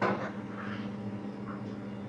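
A metal lid clinks as it lifts off a pot.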